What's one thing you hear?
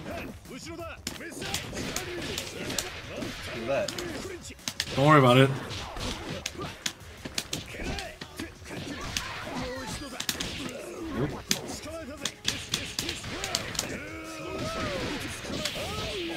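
Punches and kicks land with quick, sharp smacks.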